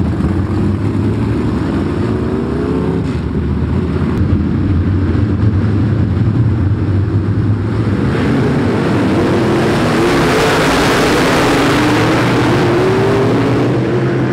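Engines rev up and down as cars accelerate past.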